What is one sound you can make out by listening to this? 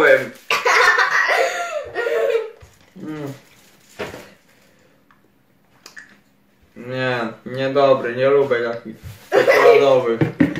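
A young boy laughs nearby.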